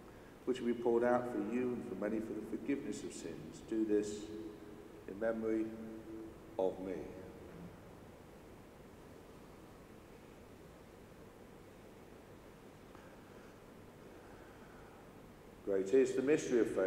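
A man speaks slowly and solemnly, heard with echo in a large hall.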